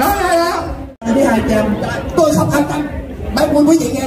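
A woman speaks excitedly into a microphone over loudspeakers.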